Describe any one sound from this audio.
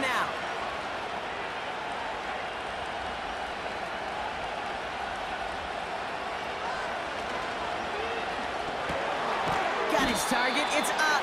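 A large stadium crowd roars steadily, swelling louder near the end.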